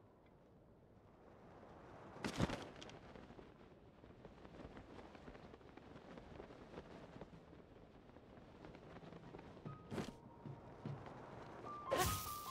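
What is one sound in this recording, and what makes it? Wind rushes steadily during a glide through the air.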